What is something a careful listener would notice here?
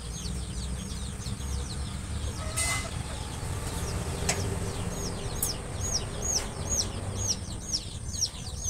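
Young chickens peep rapidly and without pause close by.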